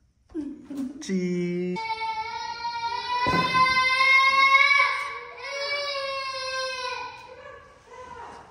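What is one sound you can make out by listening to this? A young girl sings long, high notes nearby.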